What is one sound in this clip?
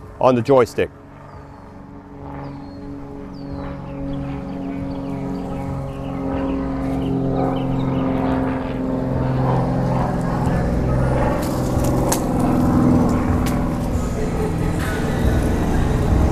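An electric wheelchair motor hums steadily as the wheelchair rolls over pavement.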